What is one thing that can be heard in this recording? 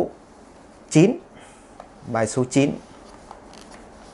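Sheets of paper rustle as they are moved.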